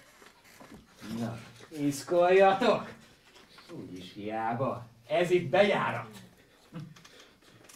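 A man speaks loudly and theatrically on a small stage.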